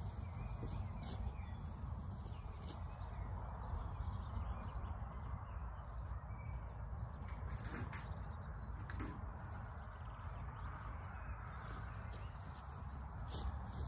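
Footsteps swish through long grass.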